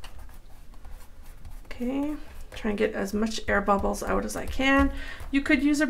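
Hands rub and smooth a sheet of paper.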